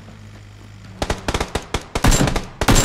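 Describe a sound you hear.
A rifle fires in rapid bursts of loud gunshots.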